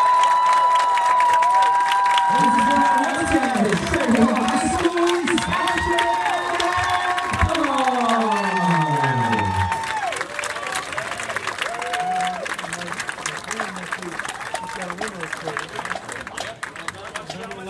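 A marching band's brass plays loud held chords outdoors.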